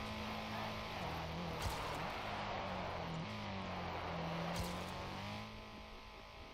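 A racing car engine roars and shifts through its gears.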